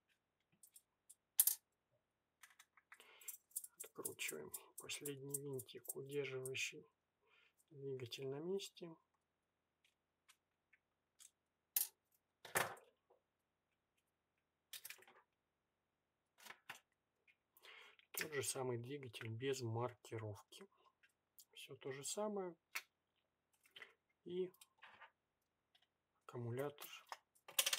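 Small plastic parts click and clatter.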